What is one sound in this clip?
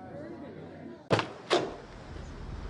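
A door thuds as it swings open.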